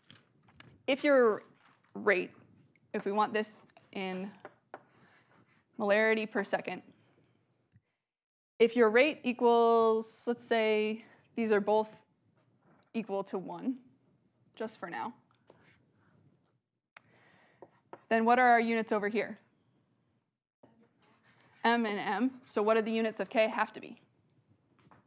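A young woman speaks calmly and clearly in a room with a slight echo, as if lecturing.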